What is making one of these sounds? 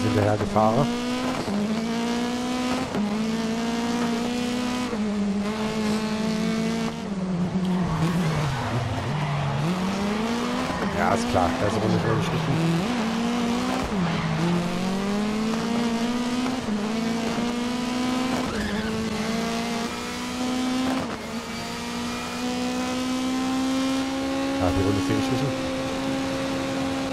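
A racing car engine roars loudly, rising through the gears and dropping as it brakes.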